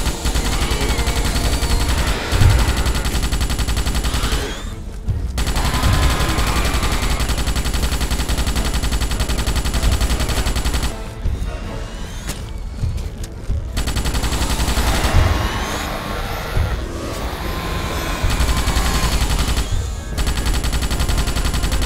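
Giant insect creatures shriek and screech.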